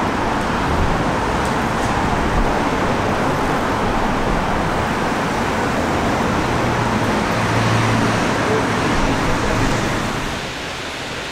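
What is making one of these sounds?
Outdoors, wind rushes steadily past.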